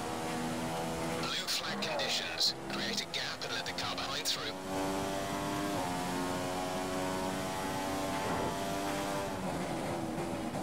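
A racing car engine whines at high revs, shifting up through the gears.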